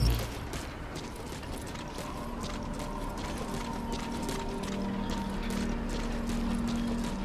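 Soft footsteps shuffle along a hard floor.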